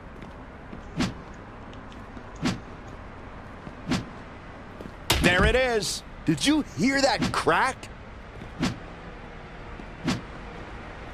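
A kendo stick strikes a body with loud thwacks.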